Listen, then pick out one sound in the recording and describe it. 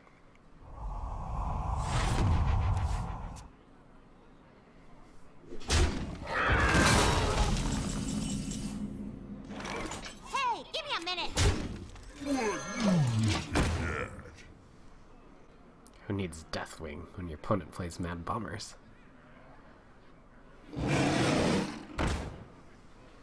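Video game sound effects whoosh, chime and crash.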